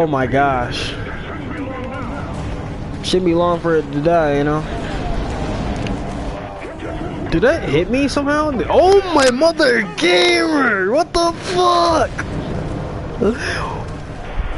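A young man talks excitedly into a microphone, his voice rising and falling.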